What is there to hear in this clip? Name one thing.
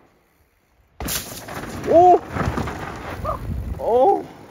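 Mountain bike tyres crunch and skid over loose dirt.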